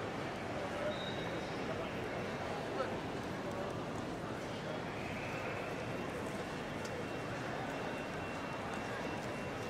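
A crowd murmurs in a large, echoing hall.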